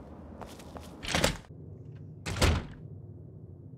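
A heavy door opens with a loud creak and thud.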